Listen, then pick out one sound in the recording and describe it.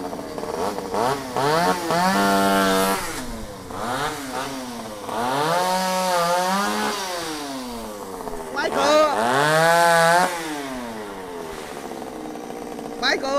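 A chainsaw revs up and down loudly in bursts.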